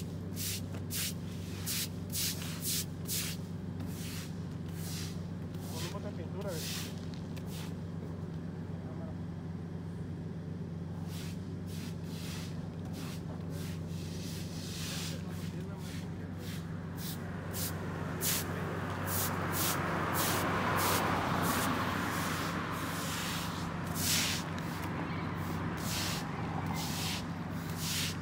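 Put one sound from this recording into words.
Traffic hums steadily in the distance outdoors.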